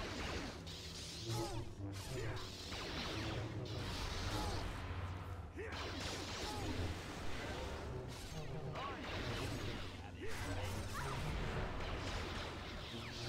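Lightsabers hum and clash in a fast duel.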